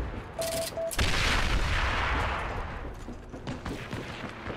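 An explosion booms nearby and rumbles away.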